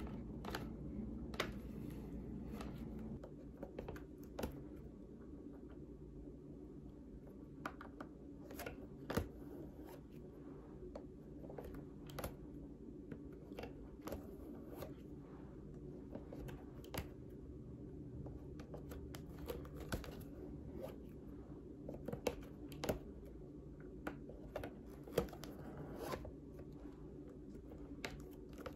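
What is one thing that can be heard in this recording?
Thread is pulled through leather with soft rasping and small clicks.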